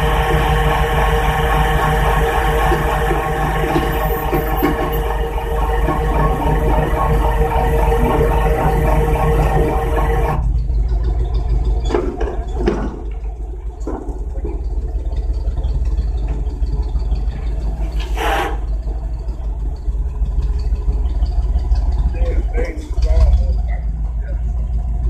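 A car engine idles nearby with a low steady hum.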